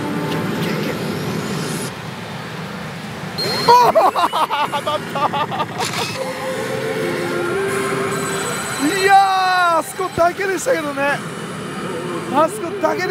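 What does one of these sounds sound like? A pachinko machine plays loud electronic music and sound effects.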